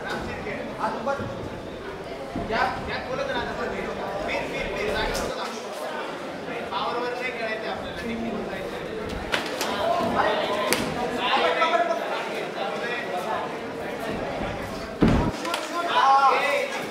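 A crowd cheers and shouts nearby.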